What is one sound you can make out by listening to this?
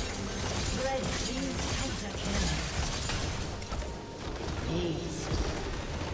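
Game spell effects crash and whoosh in a loud fight.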